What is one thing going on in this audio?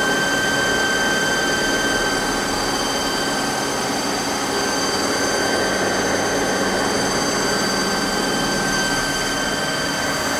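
A lathe spins steadily with a high whine.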